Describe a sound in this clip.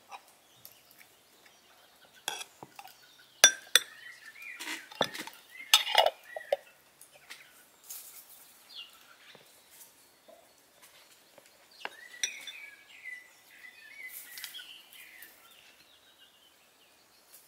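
A metal spoon scrapes and clinks against a ceramic bowl.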